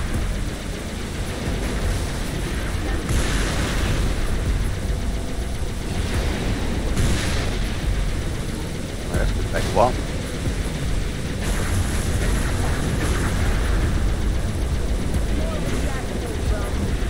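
A hover vehicle's engine hums and roars steadily.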